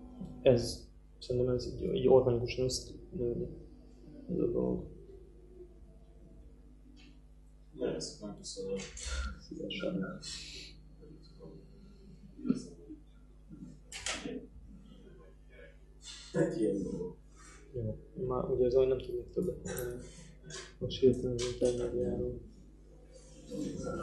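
A young man speaks calmly and close by, with pauses.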